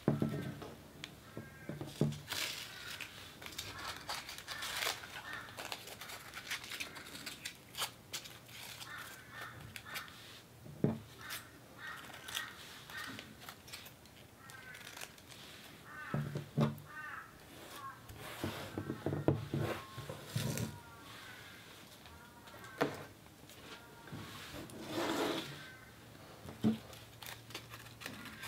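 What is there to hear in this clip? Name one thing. Paper crinkles and rustles as hands handle it up close.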